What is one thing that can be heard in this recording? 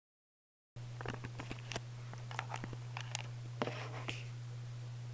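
Hands knock and rustle against a guitar close by.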